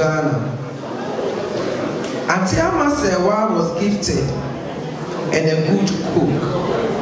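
A woman speaks into a microphone through loudspeakers in an echoing hall.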